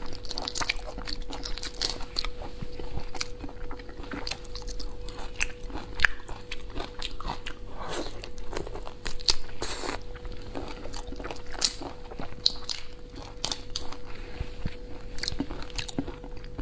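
A young woman chews and smacks her lips close to a microphone.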